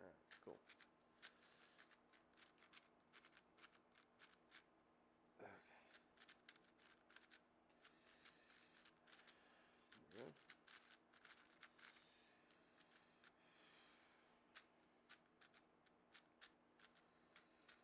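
Plastic puzzle cube pieces click and clack rapidly as they are turned.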